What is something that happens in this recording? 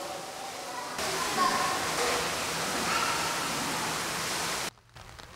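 Water churns and bubbles underwater.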